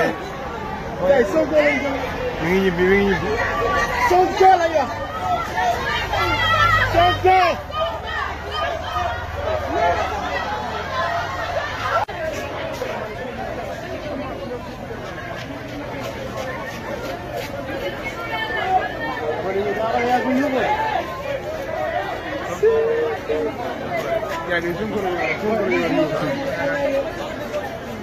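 A crowd of men and women talks and calls out outdoors.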